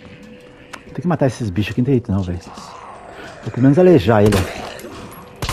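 A zombie groans and moans loudly nearby.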